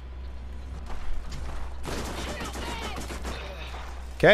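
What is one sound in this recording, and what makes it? A sniper rifle fires loud shots.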